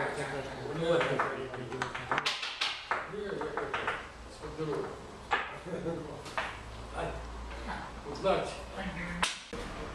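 A wooden chess piece clicks down on a board.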